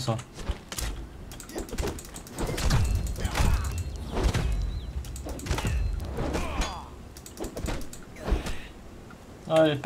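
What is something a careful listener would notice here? A weapon strikes with heavy thuds.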